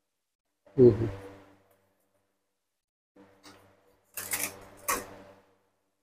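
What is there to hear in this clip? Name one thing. A plastic laptop panel clacks as it is lifted off and set down.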